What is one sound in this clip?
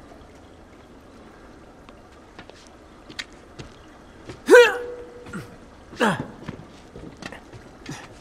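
Hands clank on a metal pipe during a climb.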